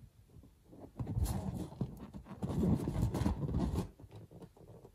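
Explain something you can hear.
Fingers rub and squeak against a rubber balloon.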